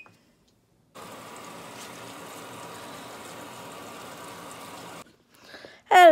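Water rushes steadily into a washing machine.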